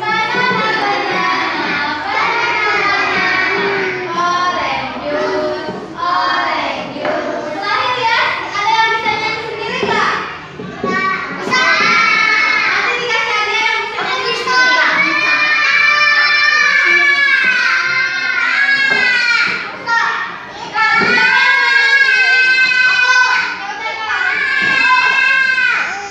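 A group of young children sing loudly together in a room.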